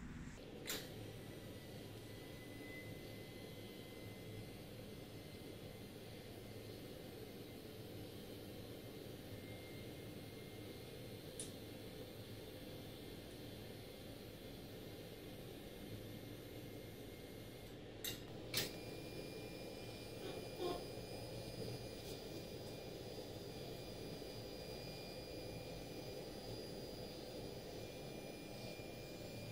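An electric motor hums steadily, its tone shifting partway through.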